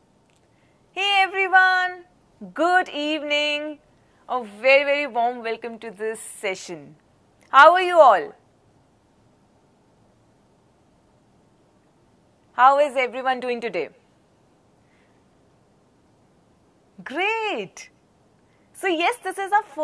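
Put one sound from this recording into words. A young woman speaks brightly and with animation into a close microphone.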